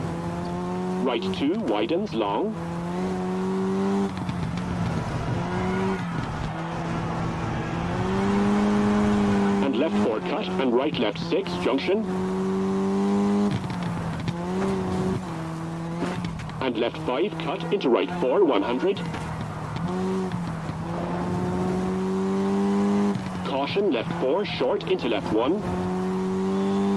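Gravel crunches and sprays under a car's tyres.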